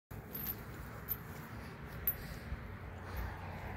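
A metal chain leash jingles now and then.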